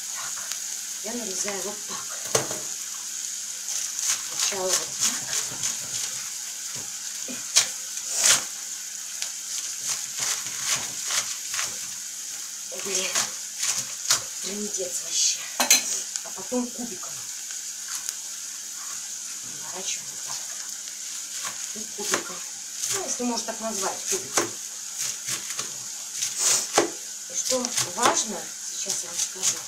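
A knife cuts through cabbage, tapping on a board.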